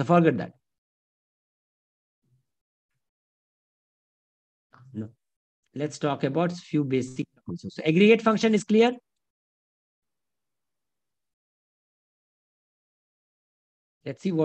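A man talks calmly through a microphone, in short bursts with pauses.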